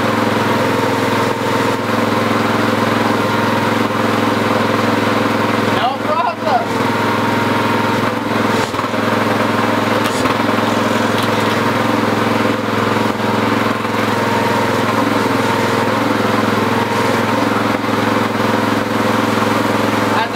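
A small engine idles steadily with a low hum.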